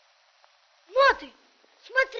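A boy shouts out briefly.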